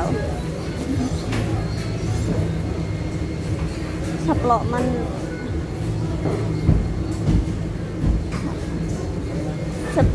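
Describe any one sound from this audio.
Footsteps pass on a hard floor.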